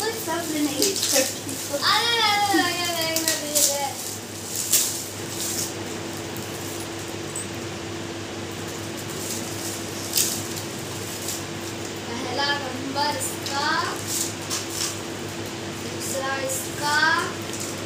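Wrapping paper and plastic crinkle and rustle.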